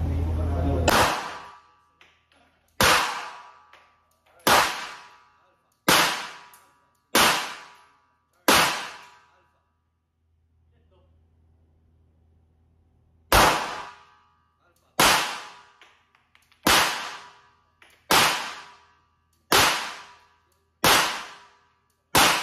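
Pistol shots ring out one by one, each followed by a short echoing ring.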